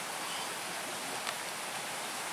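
A fish splashes softly at the surface of calm water.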